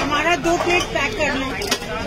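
Dumplings tumble into a metal steamer.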